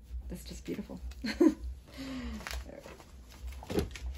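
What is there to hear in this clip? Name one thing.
Fabric rustles as it is handled and folded.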